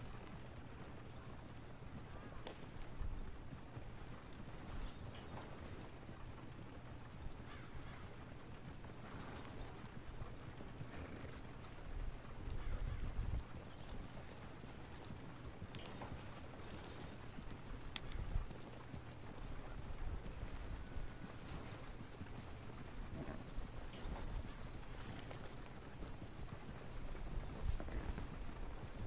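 A horse-drawn wagon rumbles and creaks along a dirt track.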